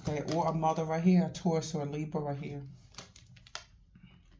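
Cards tap softly as they are laid down on a spread of other cards.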